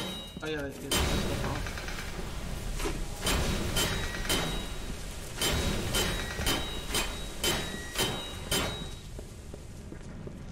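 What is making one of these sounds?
Water sprays and splashes loudly.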